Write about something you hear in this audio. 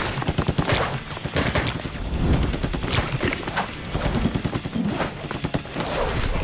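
Wet paint splatters and splashes in quick bursts.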